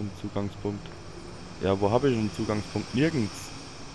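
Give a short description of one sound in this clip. Steam hisses steadily from a pipe.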